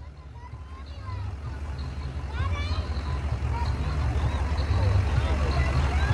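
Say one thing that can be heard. An ambulance engine rumbles as it drives closer.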